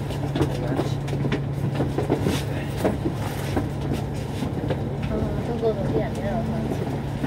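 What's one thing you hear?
A bus engine hums steadily from within.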